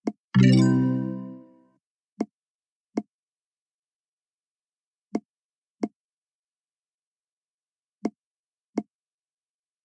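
Short soft pops sound as game balls are lifted and dropped into tubes.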